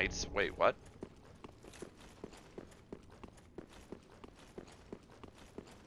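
Footsteps thud quickly and steadily on stone.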